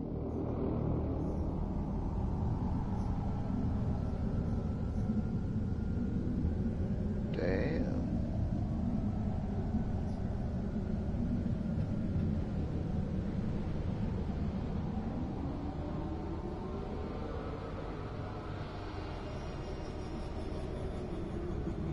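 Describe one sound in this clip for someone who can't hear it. Strong wind blows and gusts outdoors.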